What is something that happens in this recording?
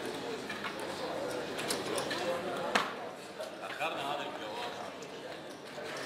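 Casino chips click and clack together on a table.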